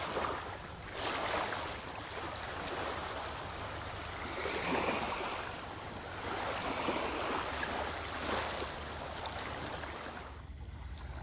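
Small waves lap gently on a sandy shore.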